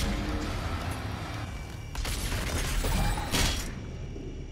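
A gun fires a stream of flame with a rushing roar.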